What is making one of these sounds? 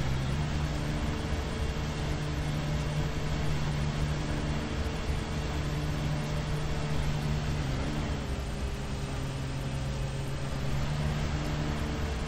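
Mower blades cut through grass.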